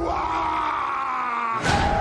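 Two men shout loudly with strain.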